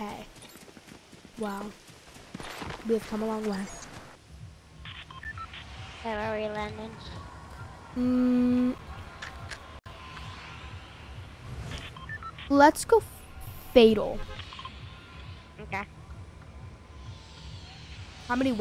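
A young boy talks excitedly into a microphone.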